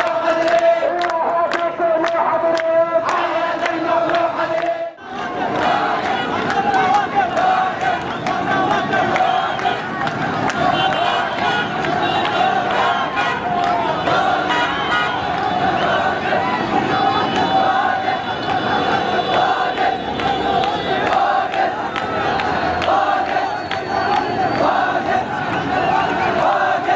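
A large crowd chants in unison outdoors.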